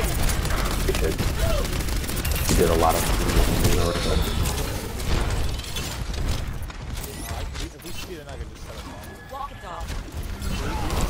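Rapid gunfire rattles and thuds.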